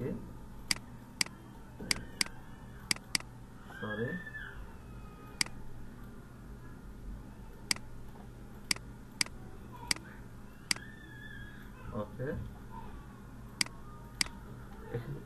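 A computer mouse clicks sharply, again and again.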